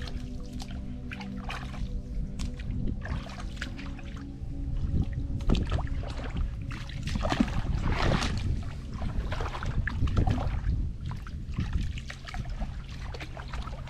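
Boots squelch and splash through wet mud.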